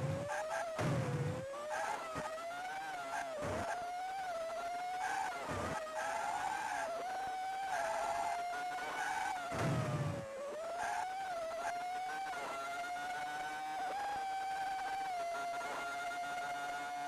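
A buzzy electronic racing car engine whines steadily, rising and falling in pitch as it speeds up and slows.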